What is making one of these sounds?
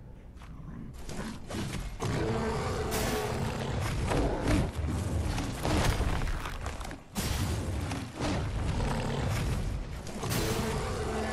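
Heavy blows thud and clash during a fight.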